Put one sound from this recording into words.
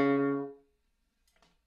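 A French horn plays a loud held note that cuts off abruptly.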